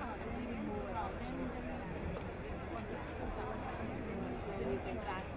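A crowd chatters nearby.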